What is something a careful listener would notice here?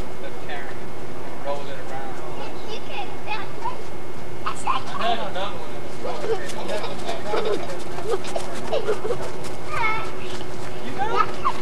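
Young children shout and chatter outdoors.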